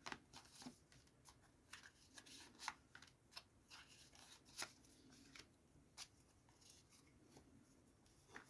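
Playing cards slide and tap softly against each other.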